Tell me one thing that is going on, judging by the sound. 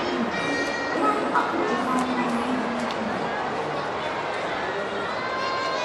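A large crowd chants and sings loudly in the stands.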